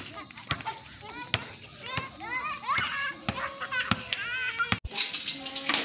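A ball bounces on pavement.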